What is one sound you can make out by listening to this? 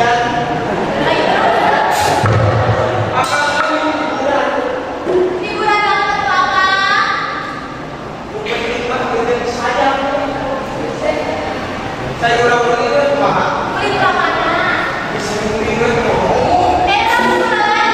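A young woman speaks and laughs loudly.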